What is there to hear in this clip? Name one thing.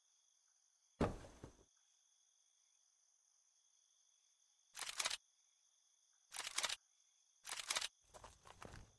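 Short menu clicks and blips sound now and then.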